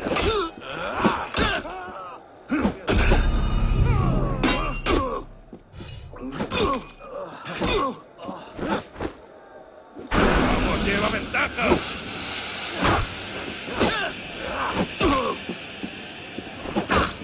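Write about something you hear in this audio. Blades clash and strike in a sword fight.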